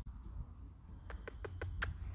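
A dog sniffs at grass.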